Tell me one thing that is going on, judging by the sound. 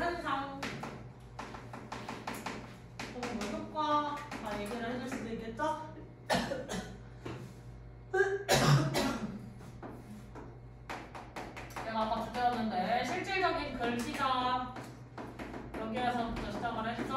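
A young woman lectures calmly, her voice slightly muffled.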